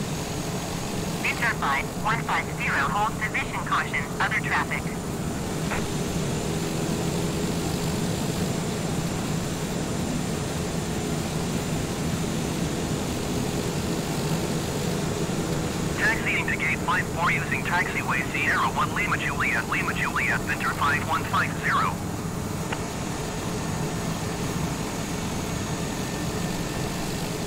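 A single-engine turboprop hums as it taxis at low power.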